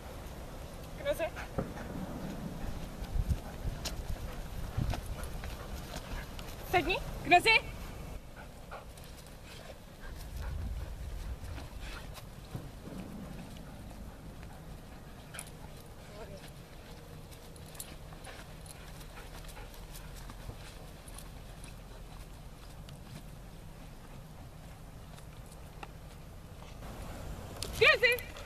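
A woman speaks to a dog in a high, praising voice close by.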